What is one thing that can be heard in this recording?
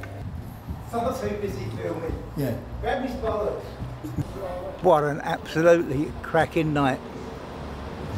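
An elderly man speaks cheerfully close up.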